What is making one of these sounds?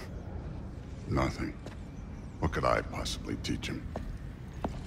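A man with a deep voice answers with animation.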